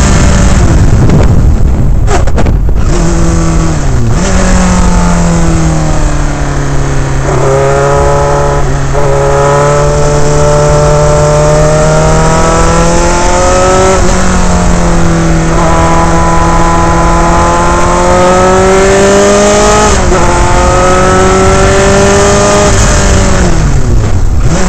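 A race car engine roars loudly close by, its pitch rising and falling as it shifts gears.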